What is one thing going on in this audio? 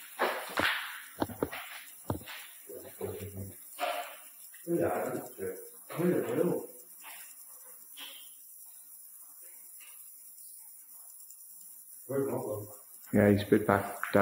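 A man talks casually nearby in an echoing tunnel.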